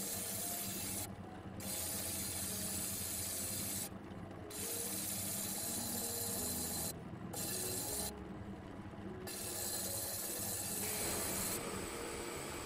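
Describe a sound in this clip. A potter's wheel hums steadily as it spins.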